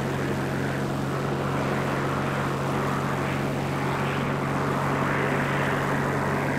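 Propeller engines drone steadily.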